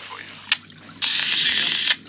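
A radio hisses loudly with static.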